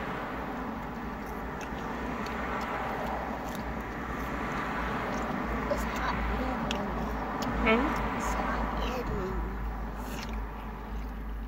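A young woman talks close to the microphone.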